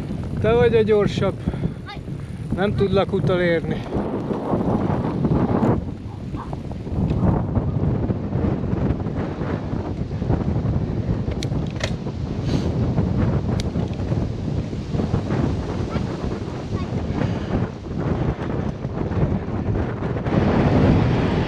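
Bicycle tyres roll over a rough road.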